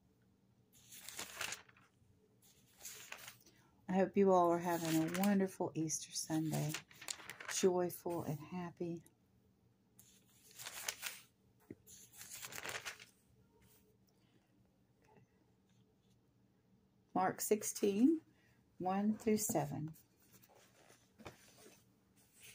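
Thin paper pages rustle as they are turned.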